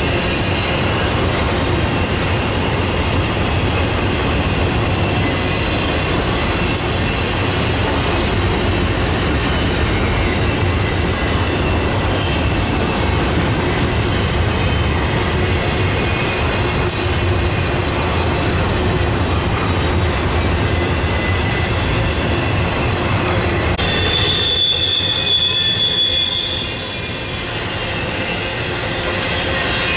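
A long freight train rumbles and clatters steadily past close by.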